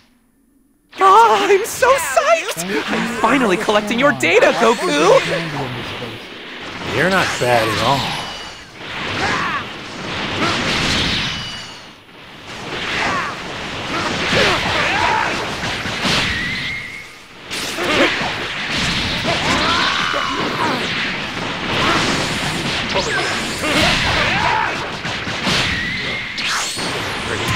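Energy blasts whoosh, crackle and boom in a fast fight.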